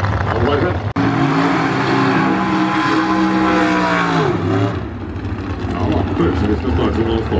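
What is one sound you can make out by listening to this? A second drag racing car's engine roars loudly as it revs up and speeds off.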